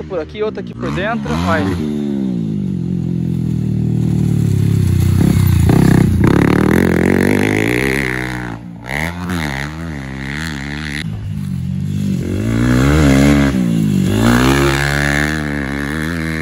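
A dirt bike engine revs up and down as the bike rides past nearby.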